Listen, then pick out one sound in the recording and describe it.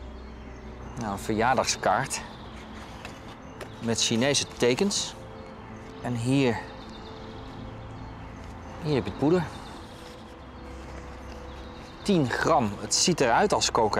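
A man speaks calmly and haltingly, close to a microphone.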